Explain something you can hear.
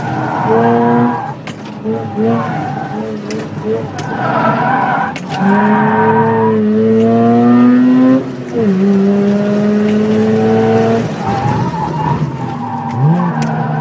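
A car engine revs hard, rising and falling as gears change.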